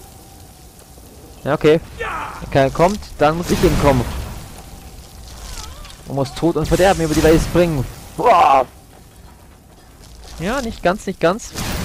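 A frost spell hisses and crackles.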